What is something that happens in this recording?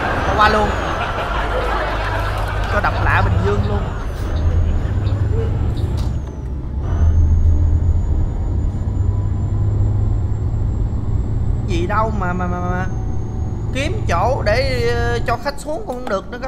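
A bus engine hums low and steadily, then cuts out.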